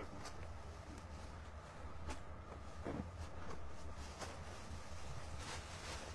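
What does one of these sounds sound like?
Cloth rustles softly as hands move it.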